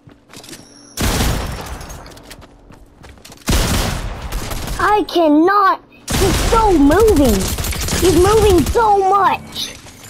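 Rapid gunfire bursts out loudly in several bursts.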